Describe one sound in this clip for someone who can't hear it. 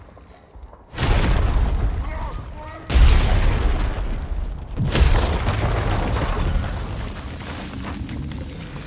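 Heavy blasts boom and rumble deeply, one after another.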